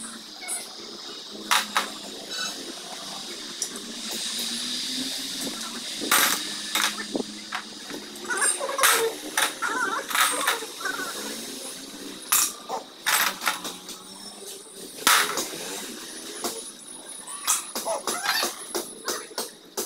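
Metal tools clink and tap against an engine.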